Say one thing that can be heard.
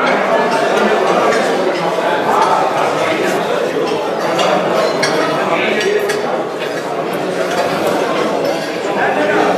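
A crowd of men chatter all at once in an echoing room.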